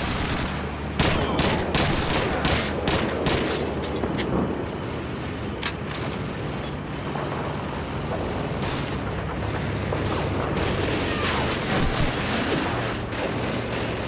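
Gunshots crack sharply in the distance, again and again.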